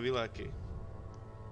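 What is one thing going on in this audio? A man speaks briefly and casually into a microphone, close by.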